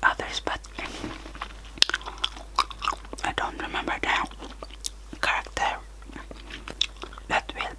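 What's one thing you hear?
A young woman whispers very close to a microphone.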